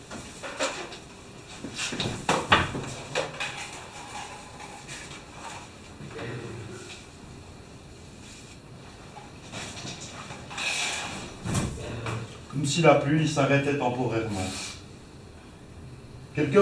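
Paper rustles in a man's hands.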